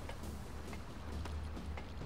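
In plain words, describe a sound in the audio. Boots clank on a metal ladder rung by rung.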